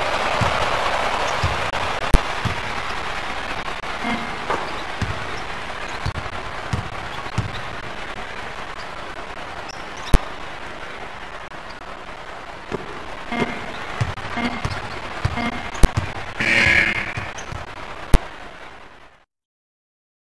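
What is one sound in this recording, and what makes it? A crowd cheers in a large arena.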